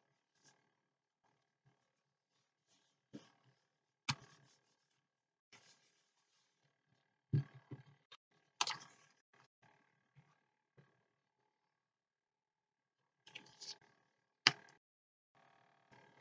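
Paper rustles and taps as hands handle a page.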